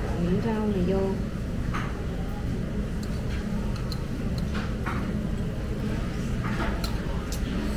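Utensils clink against bowls.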